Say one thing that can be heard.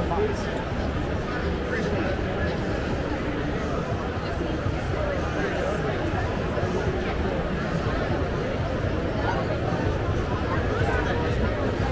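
A crowd of men and women chatters all around in a large, echoing hall.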